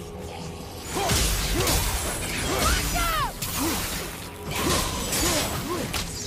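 A warrior grunts and strikes with a blade.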